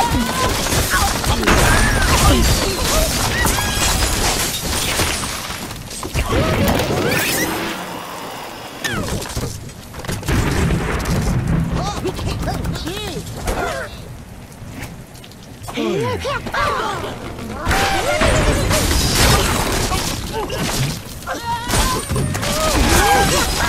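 Explosions burst with loud bangs.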